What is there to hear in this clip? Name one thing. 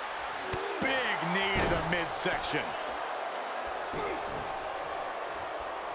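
Bodies thud heavily against a wrestling ring mat.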